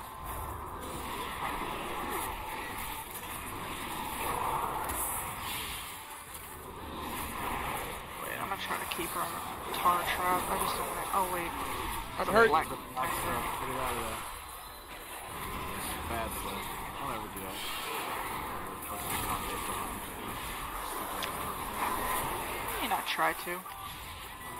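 Magic spells whoosh and crackle amid a fight.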